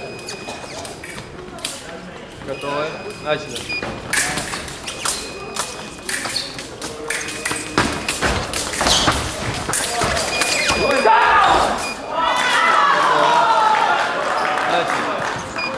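Footsteps thud and squeak on a hard floor.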